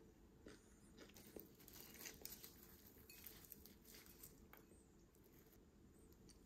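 A crispy fried snack crackles softly as it is torn apart.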